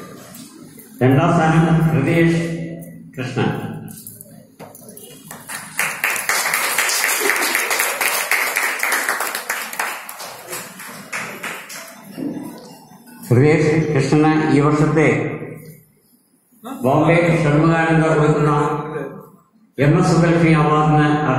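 An elderly man speaks into a microphone through a loudspeaker, in an echoing hall.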